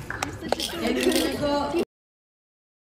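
Young girls chatter and squeal nearby.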